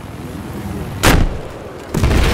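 A rocket launcher fires with a sharp whoosh.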